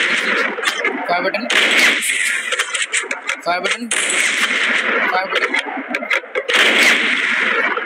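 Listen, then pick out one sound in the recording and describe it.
A sniper rifle fires single loud shots.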